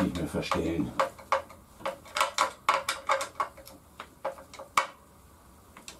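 A ratchet clicks rapidly against metal.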